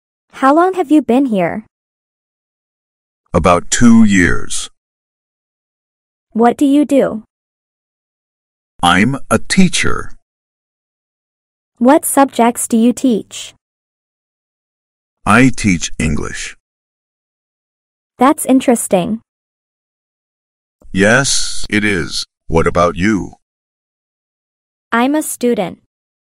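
A young man speaks calmly and clearly, asking short questions.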